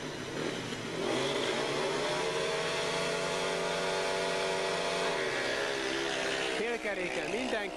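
Several motorcycle engines rumble and rev together in a steady drone.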